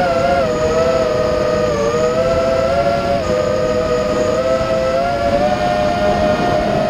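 Wind rushes past a moving car.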